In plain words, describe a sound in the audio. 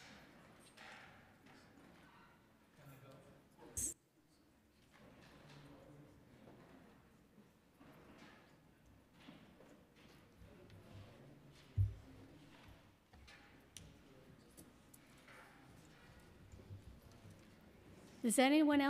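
Men and women murmur quietly in a large echoing room.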